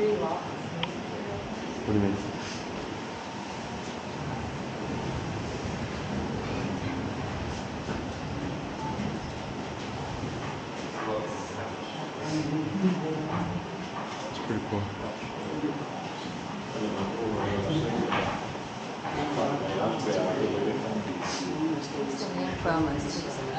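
Men and women murmur and talk quietly nearby.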